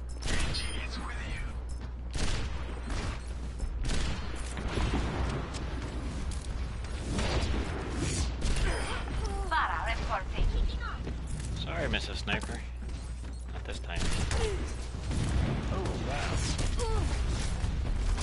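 Sniper rifle shots crack, one after another.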